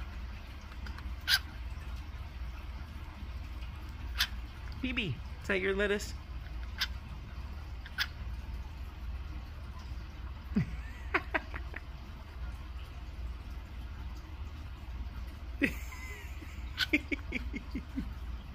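A cockatiel nibbles and tears at a leaf with small crisp clicks.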